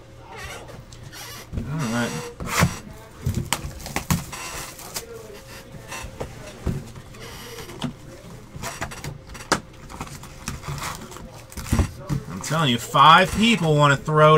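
A cardboard box slides and taps on a table.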